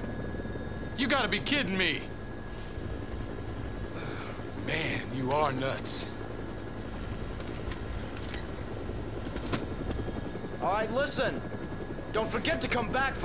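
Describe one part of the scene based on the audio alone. A man answers with animated disbelief over a headset.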